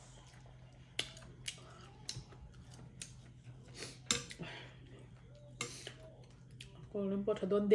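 A spoon clinks and scrapes against a bowl.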